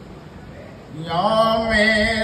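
An elderly man sings out a long, held chant through a microphone.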